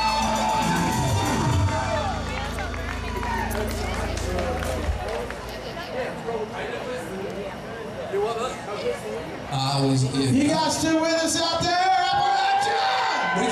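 A live rock band plays loudly outdoors through loudspeakers.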